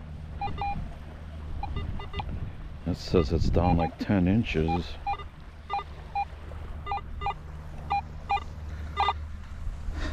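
A metal detector beeps in short, repeated tones.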